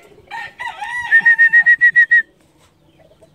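A chicken cackles loudly in quick, rapid bursts, then falls silent.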